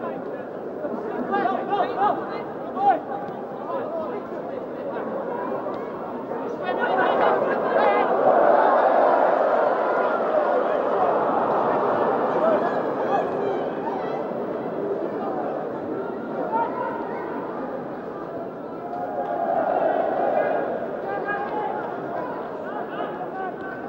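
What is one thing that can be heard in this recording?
A large stadium crowd roars and swells loudly.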